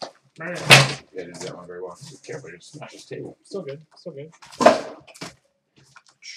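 Stacked packs are set down with soft thuds.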